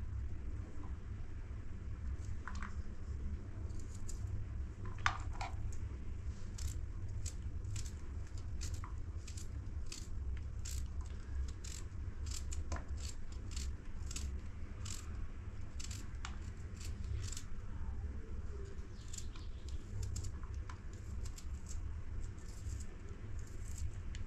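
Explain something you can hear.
A knife crunches through onion pieces in quick, short cuts.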